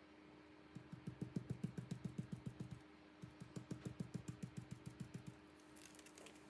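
A foam dauber taps rapidly against a stencil.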